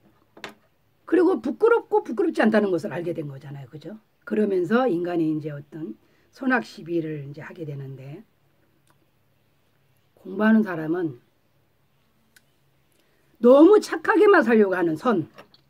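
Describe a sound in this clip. A middle-aged woman speaks calmly and expressively close by.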